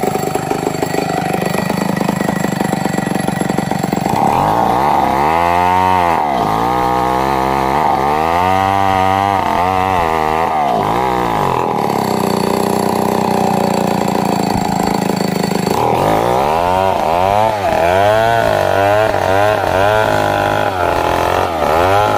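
A chainsaw engine roars and revs up and down as it cuts through wood.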